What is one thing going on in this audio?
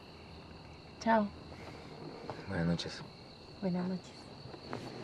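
A woman answers softly and warmly up close.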